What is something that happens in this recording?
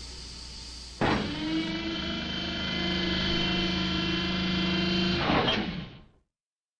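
A lift platform rumbles and whines as it descends.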